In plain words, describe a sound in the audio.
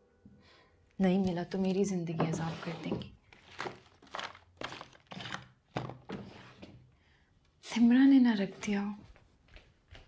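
A young woman speaks nearby in a tense voice.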